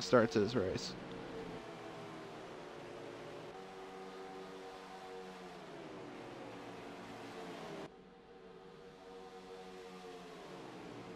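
Several racing car engines whine loudly at high speed.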